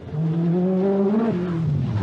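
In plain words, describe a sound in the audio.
Water sprays loudly from the car's tyres through a puddle.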